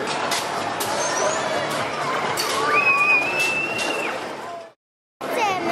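An amusement ride whirs and rumbles outdoors.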